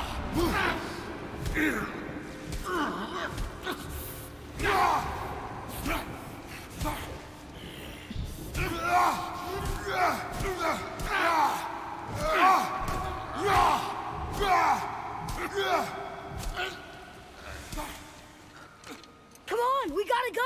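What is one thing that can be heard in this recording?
A young woman talks with animation through a close microphone.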